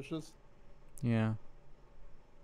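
A young man lets out a short falling exclamation.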